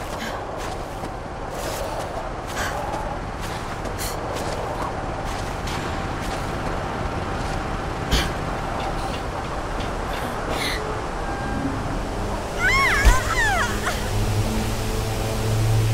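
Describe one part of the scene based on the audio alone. Wind blows steadily in the open air.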